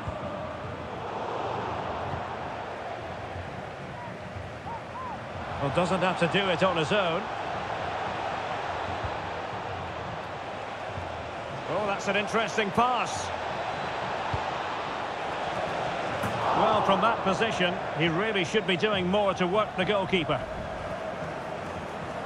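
A stadium crowd murmurs and roars steadily.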